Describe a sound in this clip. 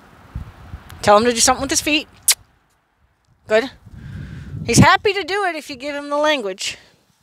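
A young woman speaks loudly nearby, outdoors.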